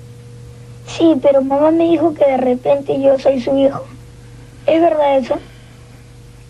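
A child speaks in a high voice.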